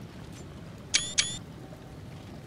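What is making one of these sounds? Two sharp chimes ring out in quick succession.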